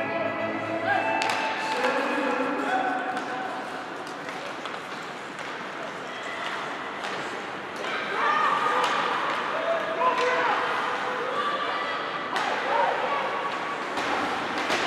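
Young players shout and call out across an echoing rink.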